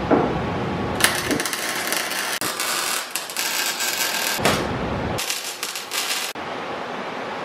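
An arc welder crackles and sizzles in loud bursts.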